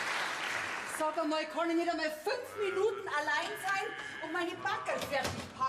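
A woman speaks with animation, heard through a television loudspeaker.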